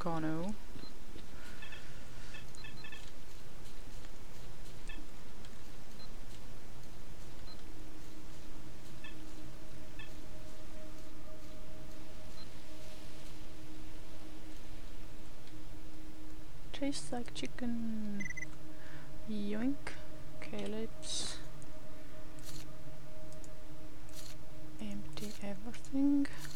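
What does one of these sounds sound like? A handheld detector beeps softly now and then.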